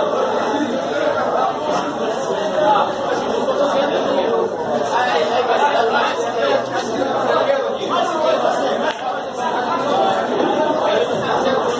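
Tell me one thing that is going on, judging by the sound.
Pool balls knock together and roll on the table.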